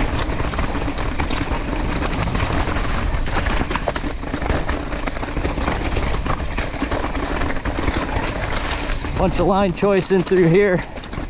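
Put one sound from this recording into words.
Wind rushes past outdoors.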